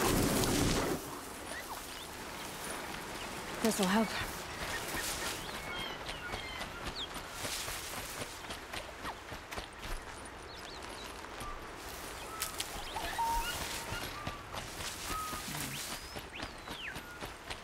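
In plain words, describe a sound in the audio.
Footsteps rustle through tall grass and leafy plants.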